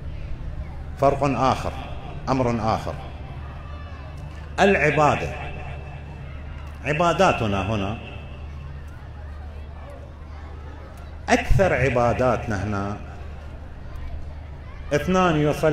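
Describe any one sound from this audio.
An elderly man speaks slowly and solemnly into a microphone, in bursts with pauses, through a loudspeaker in an echoing room.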